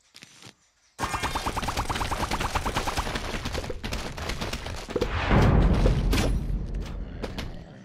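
A game plant fires a rapid stream of popping shots.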